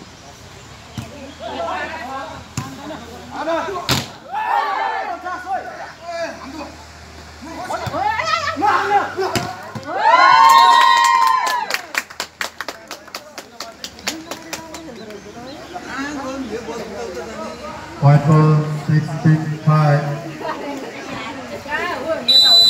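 Men shout and cheer outdoors.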